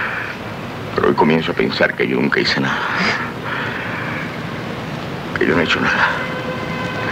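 A man speaks calmly nearby.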